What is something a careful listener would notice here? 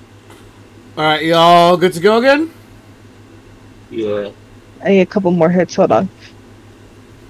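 A man speaks animatedly into a microphone, close up.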